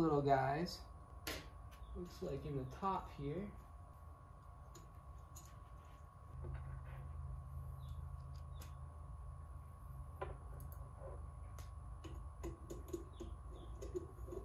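Small plastic and metal parts click and rattle as they are handled.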